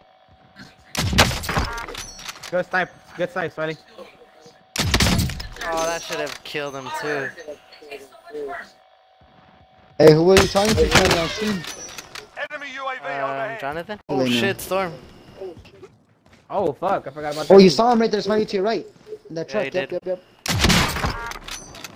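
Rifle shots crack loudly.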